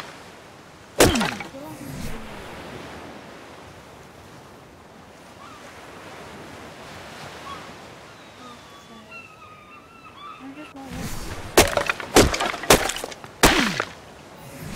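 A stone hatchet chops into a tree trunk with sharp thuds.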